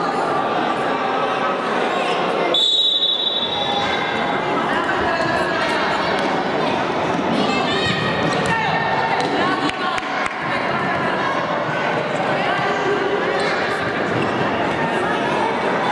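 Spectators chatter nearby.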